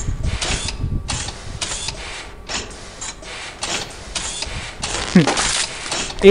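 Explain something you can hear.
A machine hisses in short bursts as a mechanical arm moves.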